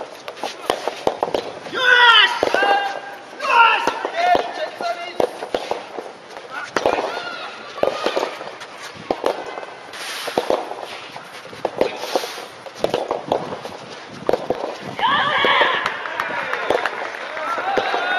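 Spectators chatter at a distance outdoors.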